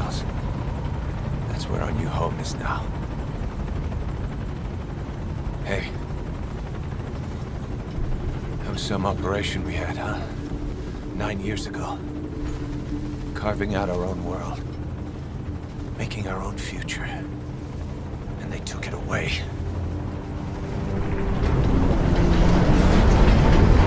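A helicopter engine rumbles steadily.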